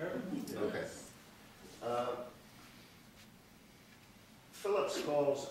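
A middle-aged man speaks calmly, in short phrases with pauses.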